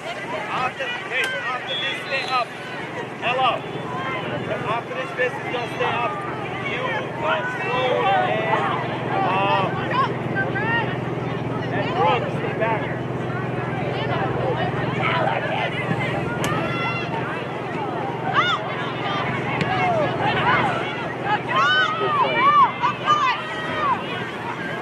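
Young women shout and call to each other outdoors.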